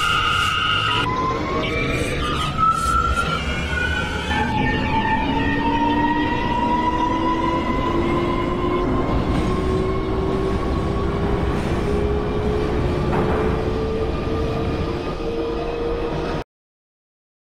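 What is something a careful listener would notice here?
A train's electric motors whine and rise in pitch as the train speeds up.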